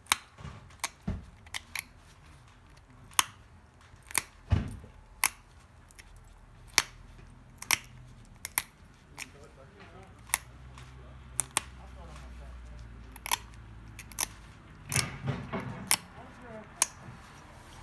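Stone flakes snap off with sharp, short clicks.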